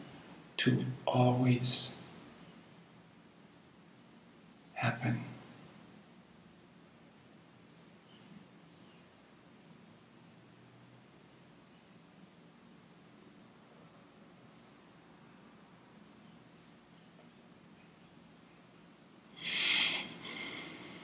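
An elderly man speaks calmly and close by, in short bursts with long pauses.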